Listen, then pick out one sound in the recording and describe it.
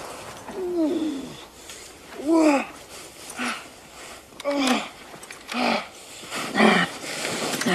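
A man groans and moans in pain close by, in short breathy bursts.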